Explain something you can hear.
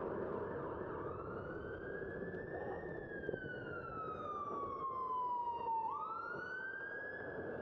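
An ambulance siren wails close by, rising and falling.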